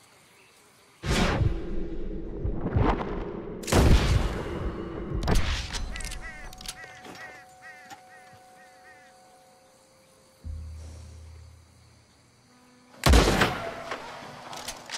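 A rifle fires loud shots that echo and fade.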